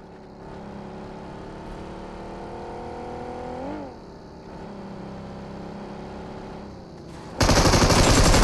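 A car engine hums steadily as a car drives.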